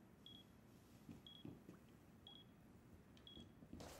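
Footsteps sound on a hard floor.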